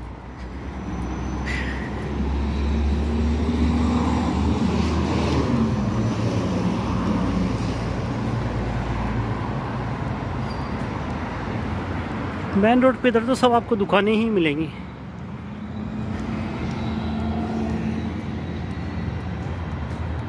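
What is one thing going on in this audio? Traffic hums steadily on a nearby street.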